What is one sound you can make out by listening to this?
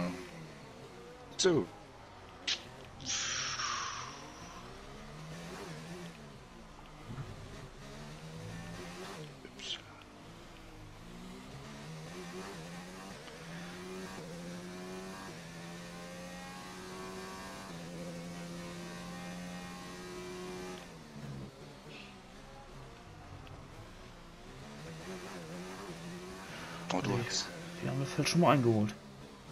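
A racing car engine roars, revving up and down as it shifts gears.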